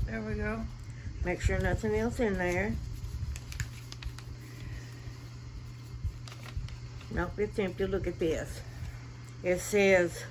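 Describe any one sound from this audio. A paper card rustles in a woman's hands.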